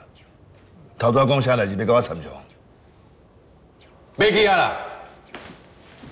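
An elderly man answers in a low, questioning voice, close by.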